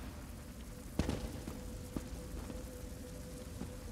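Electric sparks crackle and zap.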